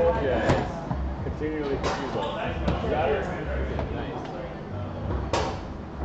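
A crowd of young men and women chatters close by.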